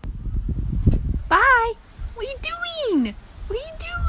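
A cat meows close by.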